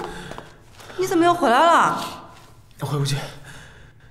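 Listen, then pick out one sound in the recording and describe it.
A young man speaks with surprise nearby.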